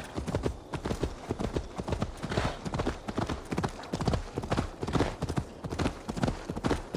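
Horse hooves thud rhythmically on grassy ground at a gallop.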